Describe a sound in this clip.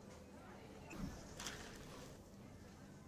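A straw stirs ice in a plastic cup.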